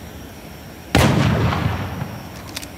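A heavy gun fires a single loud blast that rings out and fades.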